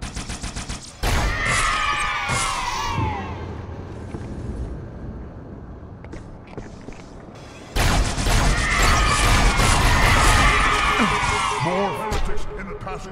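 Explosions boom and crackle loudly.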